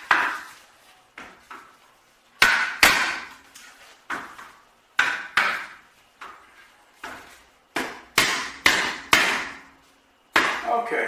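A hammer taps on a wooden frame, ringing in a small room.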